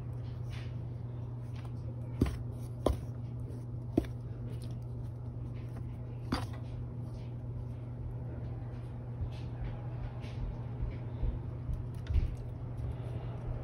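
Flour rustles softly as it is stirred in a metal bowl.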